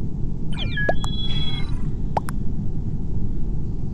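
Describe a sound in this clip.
Short electronic beeps count down in a game.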